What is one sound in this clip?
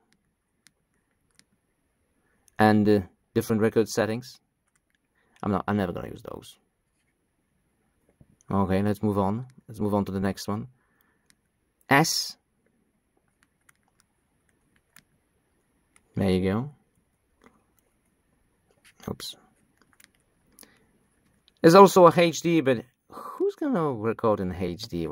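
Small buttons click softly under a thumb.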